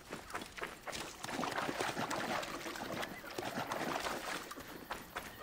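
Water splashes under running feet.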